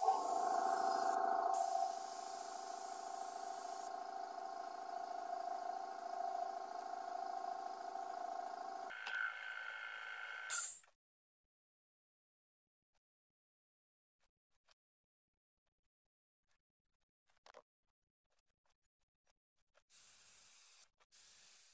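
A spray gun hisses in short bursts.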